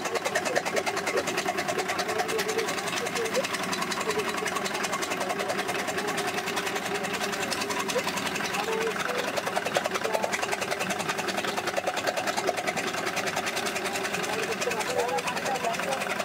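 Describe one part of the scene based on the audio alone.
Straw rustles and crackles as it is beaten against the machine's spinning drum.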